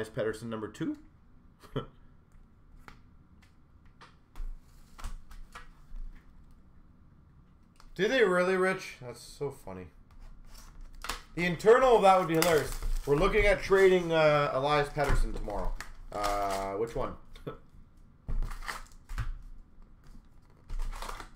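Cardboard boxes rustle and knock as they are handled.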